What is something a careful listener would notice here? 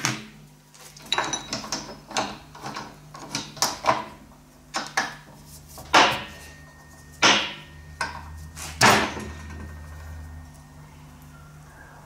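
Metal parts of a vise clink and click as they are tightened.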